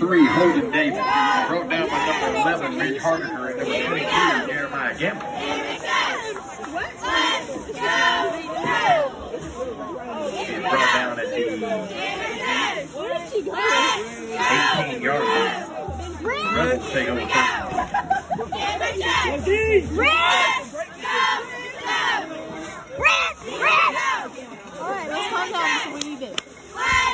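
A crowd cheers in the distance.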